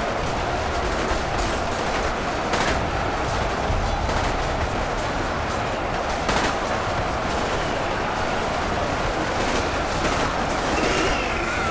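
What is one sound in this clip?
Weapons clash and clang sharply in close fighting.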